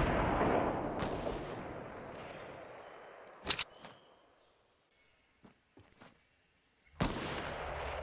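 A rifle fires loud shots that boom and echo away.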